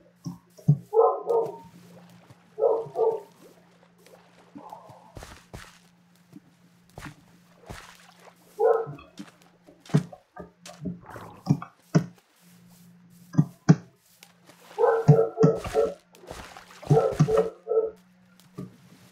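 Water splashes as someone swims through it.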